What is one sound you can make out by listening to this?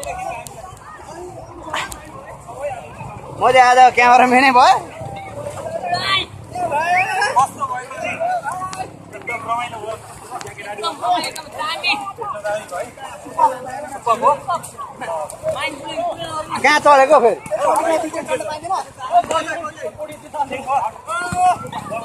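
Water splashes as people wade and thrash about.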